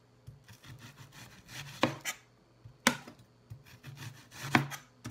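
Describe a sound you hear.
A knife chops through an onion onto a cutting board with sharp thuds.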